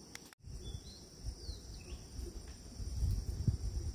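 Leaves rustle as fruit is picked by hand.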